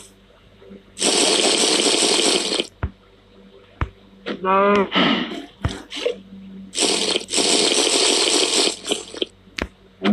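Milk splashes into a bucket in short, noisy bursts.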